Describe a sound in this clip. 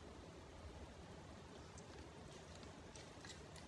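A young woman chews food softly.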